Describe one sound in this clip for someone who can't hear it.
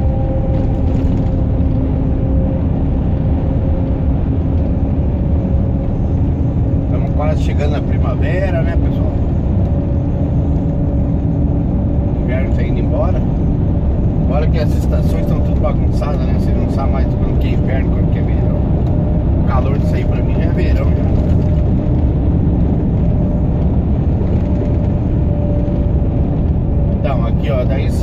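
Tyres rumble on the road at speed.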